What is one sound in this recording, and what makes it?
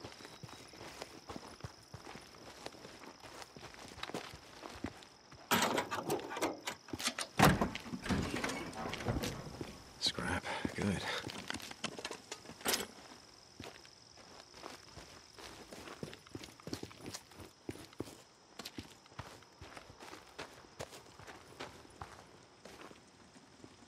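Footsteps run over gravel, asphalt and dry grass.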